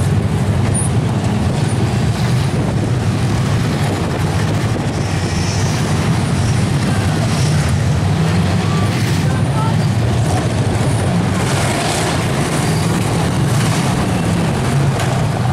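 Car engines roar loudly and steadily.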